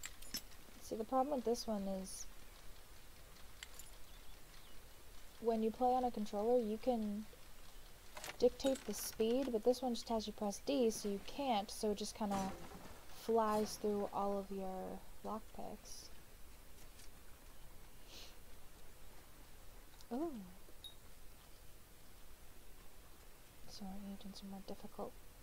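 A young woman talks casually into a microphone, close by.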